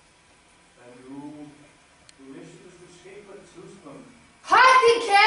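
A young girl talks quietly nearby.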